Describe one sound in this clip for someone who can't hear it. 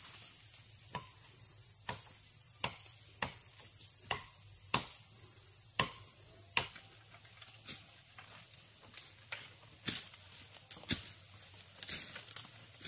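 A blade chops sharply into wood, blow after blow.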